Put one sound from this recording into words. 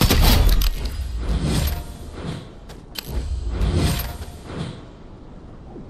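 Footsteps thud quickly across the ground.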